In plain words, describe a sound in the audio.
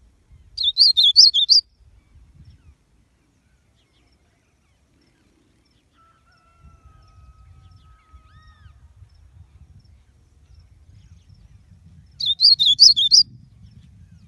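A small seedeater finch sings a short, quick song.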